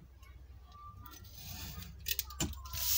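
A blade slices through paper.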